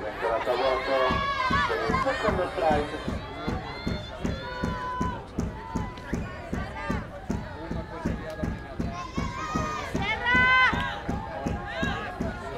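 Players clap in a steady rhythm.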